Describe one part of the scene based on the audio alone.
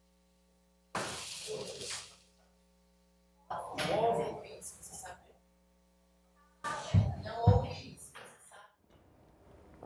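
A woman calls out questions loudly from nearby.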